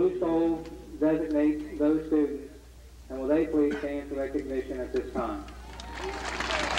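A man speaks through a loudspeaker outdoors, reading out calmly.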